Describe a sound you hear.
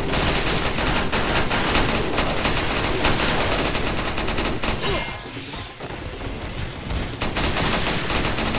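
A handgun fires several shots.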